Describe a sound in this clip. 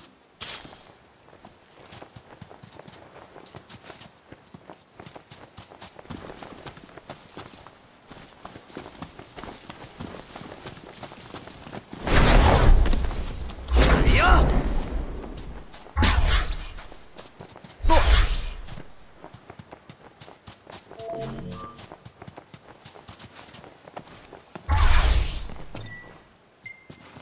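Footsteps run quickly across sand and grass.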